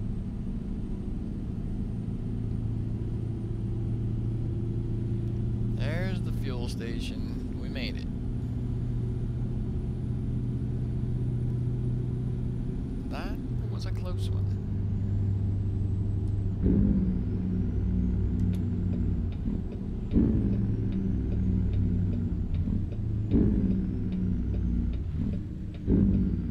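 Tyres roll over the road.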